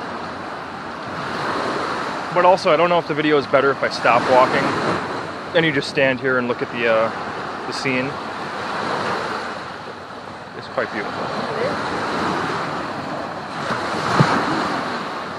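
Small waves wash and break steadily onto a sandy shore.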